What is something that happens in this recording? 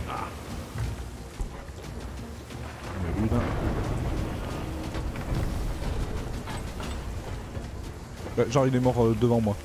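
Rough sea waves crash and roar.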